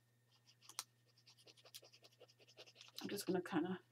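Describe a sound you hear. A paintbrush dabs and scratches softly on paper.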